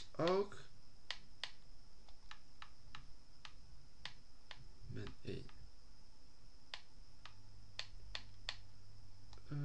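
Soft electronic menu clicks tick quickly, one after another.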